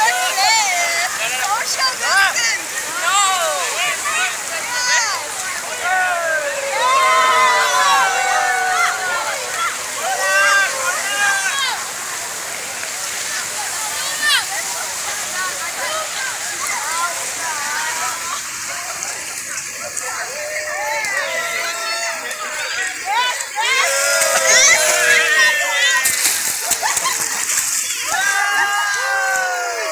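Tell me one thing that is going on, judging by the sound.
A crowd of people shouts and cheers excitedly outdoors.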